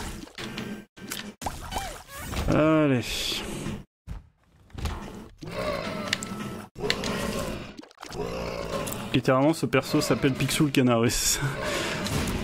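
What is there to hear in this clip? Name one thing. Video game sound effects pop and splat.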